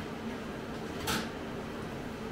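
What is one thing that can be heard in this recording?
Metal clinks on a metal table.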